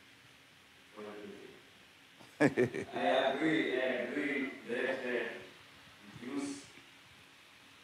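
An older man speaks calmly into a microphone, heard over a loudspeaker.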